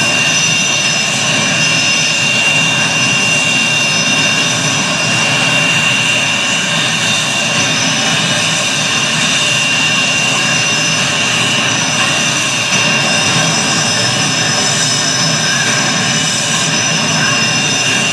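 A jet engine whines and roars steadily at idle.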